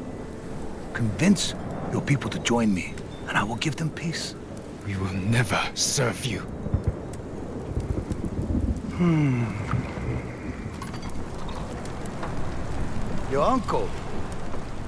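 A deep-voiced middle-aged man speaks slowly and menacingly.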